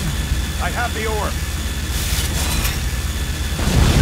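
An energy weapon fires a crackling, buzzing beam.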